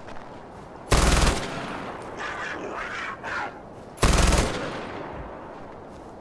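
A rifle fires two loud shots that echo away.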